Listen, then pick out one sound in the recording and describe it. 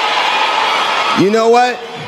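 A woman shouts and cheers.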